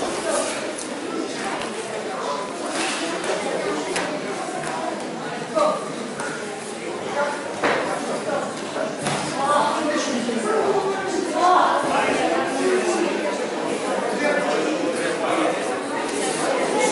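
Feet shuffle and scuff on a mat.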